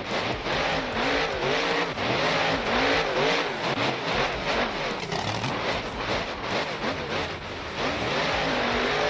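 Tyres churn through loose dirt.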